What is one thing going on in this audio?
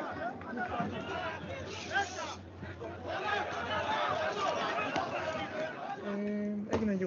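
A large crowd shouts and chants outdoors.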